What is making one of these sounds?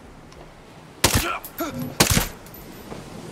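A pistol fires two sharp shots close by.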